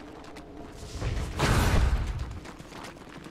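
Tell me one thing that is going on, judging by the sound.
A magical blast whooshes loudly.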